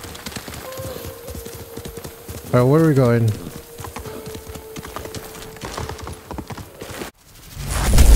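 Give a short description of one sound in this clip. Horse hooves clop steadily on the ground.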